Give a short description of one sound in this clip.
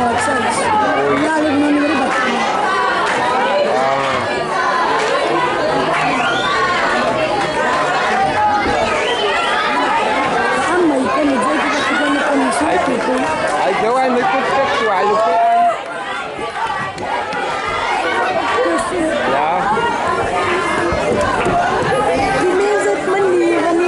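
A crowd of spectators chatters and shouts outdoors, close by.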